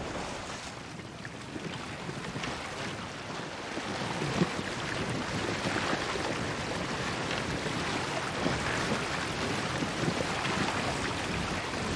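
Water splashes and laps against a boat's hull.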